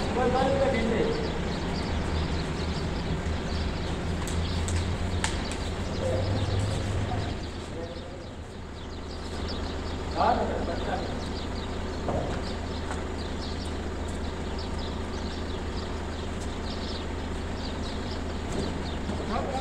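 A steady low engine hum runs throughout.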